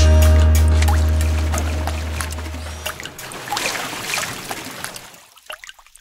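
Raindrops patter and drip.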